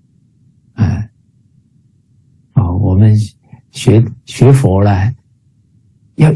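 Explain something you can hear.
A middle-aged man speaks cheerfully over an online call.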